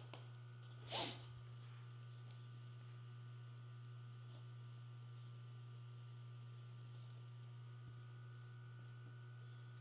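Fabric pieces rustle softly against a tabletop.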